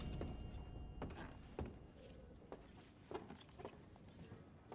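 Boots thud on wooden floorboards.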